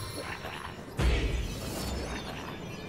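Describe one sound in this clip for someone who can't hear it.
A fiery blast bursts with a loud whoosh.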